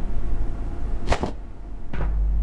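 A short pickup chime sounds.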